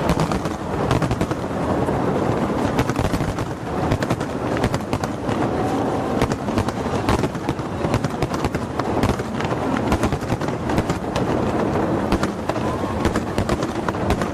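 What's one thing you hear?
Fireworks burst and crackle overhead in rapid succession.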